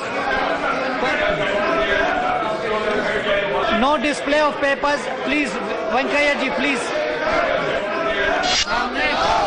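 A crowd of men shout over one another in a large hall.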